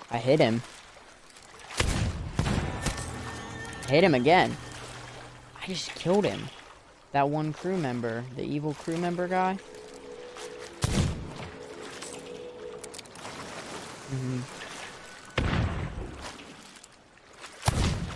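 Sea waves wash and splash.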